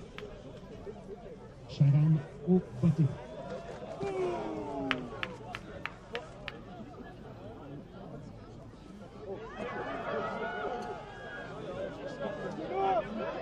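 A crowd of spectators shouts and cheers outdoors in the distance.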